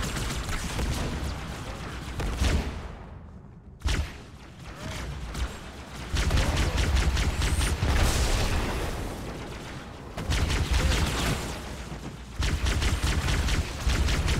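A plasma weapon fires in rapid buzzing bursts.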